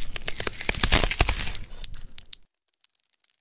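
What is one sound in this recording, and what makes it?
A cloth rustles and brushes loudly right against the microphone.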